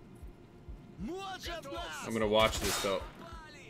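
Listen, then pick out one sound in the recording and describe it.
A young man talks into a close microphone with animation.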